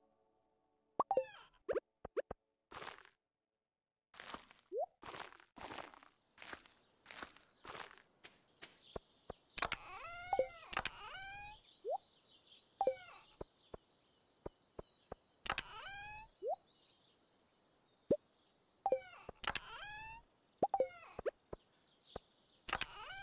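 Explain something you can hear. Short electronic blips and clicks sound as a game menu opens and closes.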